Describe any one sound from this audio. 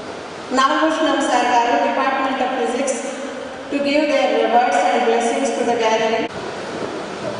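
A middle-aged woman reads out through a microphone in a steady, chanting voice.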